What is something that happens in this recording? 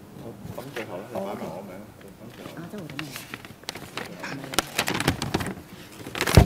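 Men talk quietly in a large, echoing hall.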